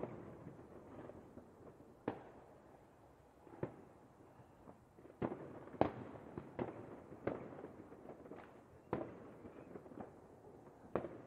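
Fireworks bang and crackle in the distance, echoing across the open air.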